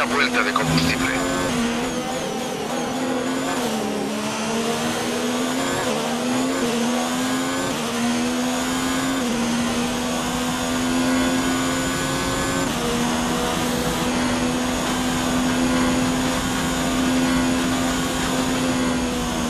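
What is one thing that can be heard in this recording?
A racing car engine whines at high revs, rising and falling as gears shift.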